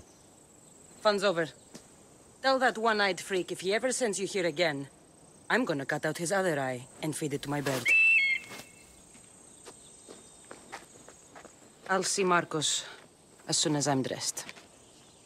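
A young woman speaks calmly and closely.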